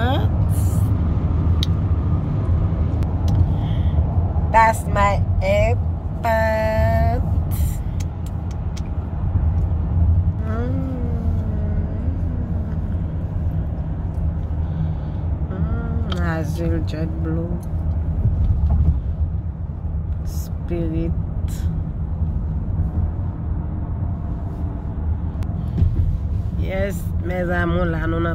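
A car engine and tyres rumble steadily on a road.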